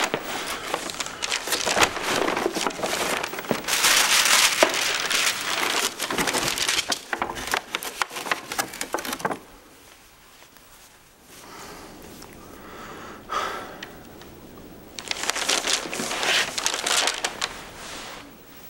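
A paper bag rustles and crinkles loudly close by.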